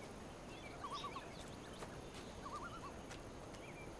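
Footsteps crunch on dry leaves and gravel.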